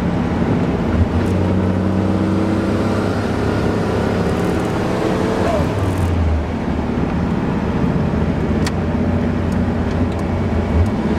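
Wind rushes past the car.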